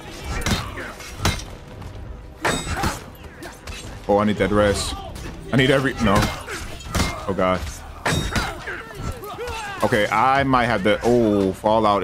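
Swords clash and clang repeatedly.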